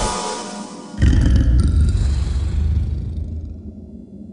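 A heavy stone statue grinds and rumbles as it moves.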